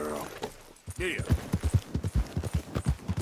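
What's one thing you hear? A horse's hooves gallop over the ground.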